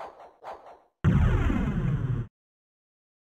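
A heavy lid closes with a deep rumbling boom.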